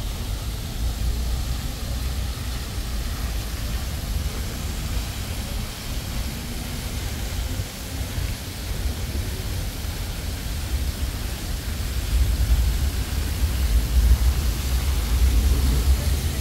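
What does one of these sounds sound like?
Water from a fountain splashes and rushes steadily.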